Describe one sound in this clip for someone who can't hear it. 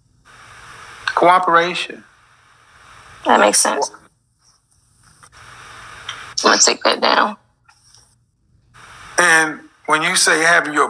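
A young woman speaks in short bursts over an online call.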